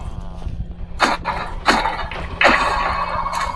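A sword swishes and strikes with a thud.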